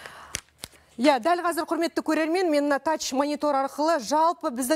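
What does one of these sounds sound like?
A woman speaks clearly and calmly into a microphone, like a news presenter.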